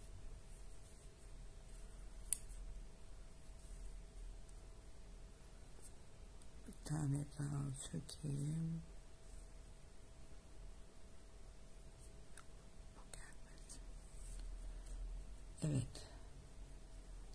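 Yarn rustles softly as a crochet hook pulls it through loops.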